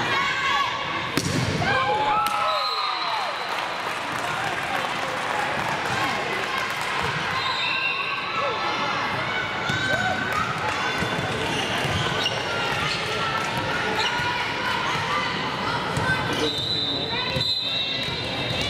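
A volleyball is struck with a sharp smack.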